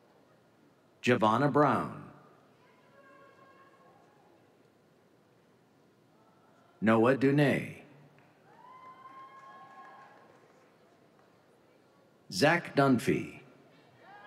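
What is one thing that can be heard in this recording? A man reads out names over a loudspeaker in a large echoing hall.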